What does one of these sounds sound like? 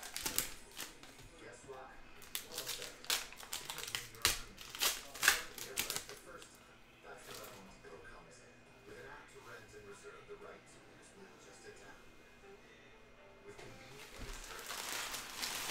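Cards snap and flick as hands handle a stack.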